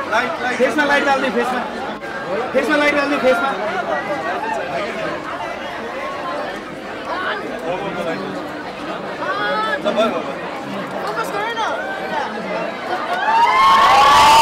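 A crowd of young people chatter and call out close by.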